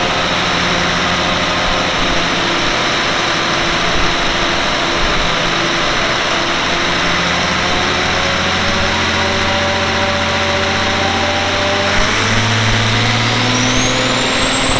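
A large engine runs loudly and steadily, its pitch shifting slightly as it is throttled, in an echoing room.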